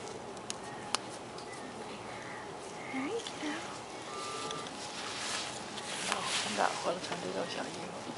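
Fleece fabric rustles as hands wrap a baby.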